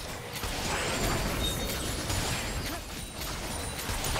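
Magic spells whoosh and blasts crackle in a fantasy game battle.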